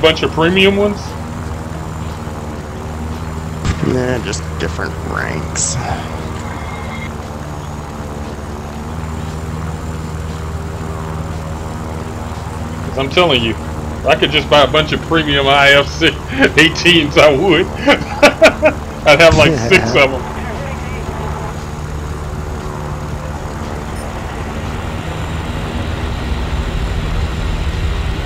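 A piston-engined fighter plane drones in a video game.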